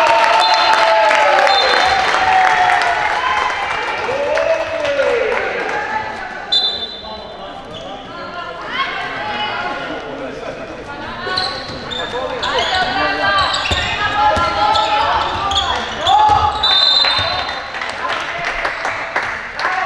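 A ball bounces on a wooden floor.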